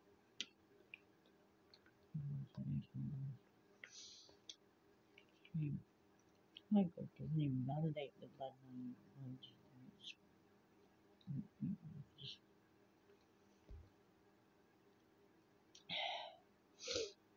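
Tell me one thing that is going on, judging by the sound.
A spoon scrapes and clinks in a plastic bowl.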